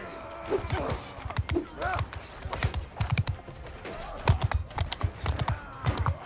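Armour clinks and rattles with each step.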